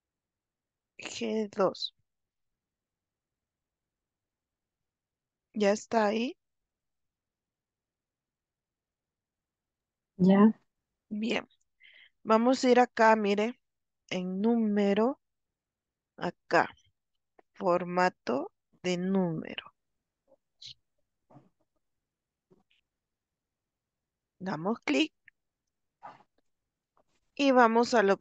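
A woman speaks calmly, heard through an online call, with pauses.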